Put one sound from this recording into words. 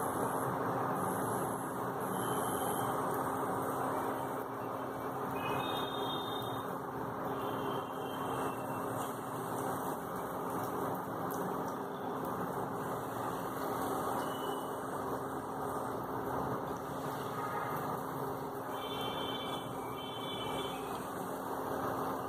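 Dumplings of batter drop into hot oil with a soft splash.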